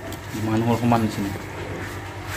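A man speaks close to the microphone.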